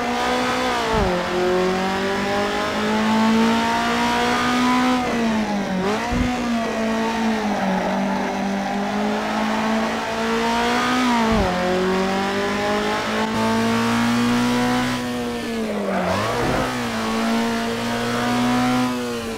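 A racing car engine roars steadily, rising in pitch and dropping sharply with each gear change.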